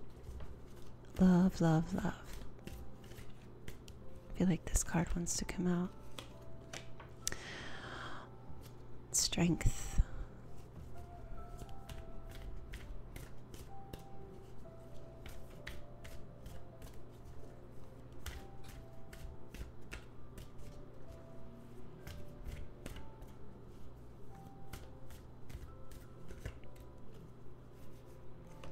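Playing cards are shuffled with soft flicks and taps.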